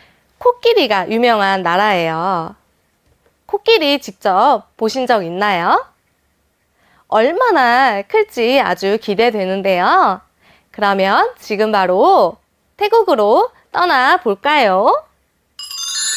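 A young woman speaks brightly and with animation into a microphone.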